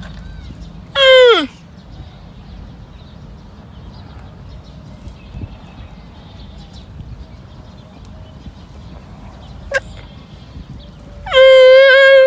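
A newborn camel calf bleats loudly in short, high, wavering cries.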